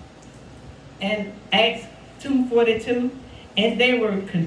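A woman speaks with feeling into a microphone, in a slightly echoing room.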